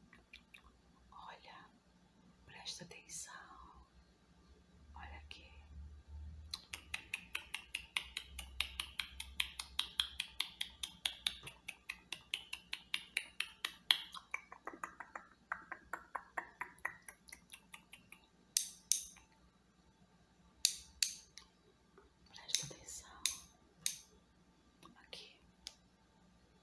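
A young woman whispers softly, very close to the microphone.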